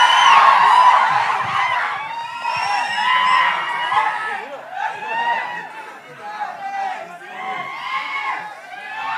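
Several men chatter and call out excitedly in a noisy crowd.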